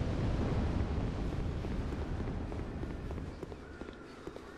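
Footsteps run on a stone floor.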